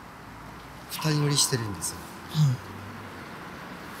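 A second man speaks with animation close by.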